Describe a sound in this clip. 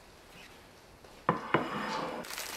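A glass bowl clinks as it is set on a table.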